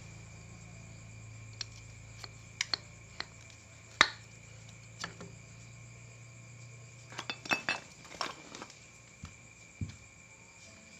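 Metal parts clink and knock together as a brake caliper is handled.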